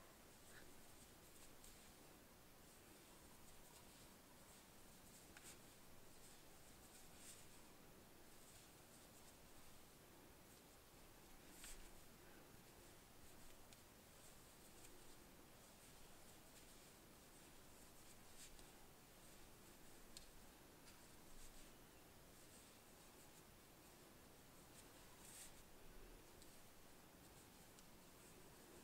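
Yarn rustles faintly as it is pulled through stitches.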